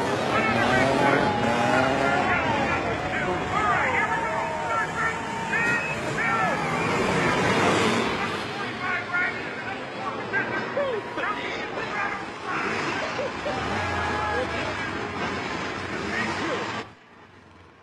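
A crowd shouts and cheers loudly.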